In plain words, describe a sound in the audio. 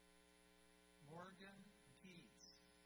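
A man reads out a name over a loudspeaker in a large echoing hall.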